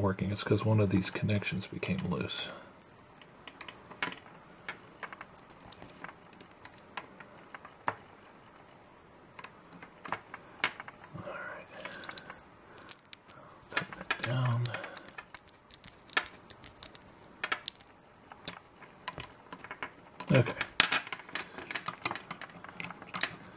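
Small plastic connectors and wires click and rustle as they are handled.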